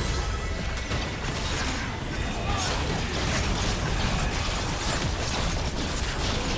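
Game impacts and blasts thud repeatedly.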